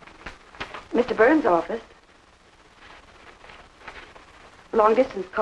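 A woman speaks brightly into a telephone.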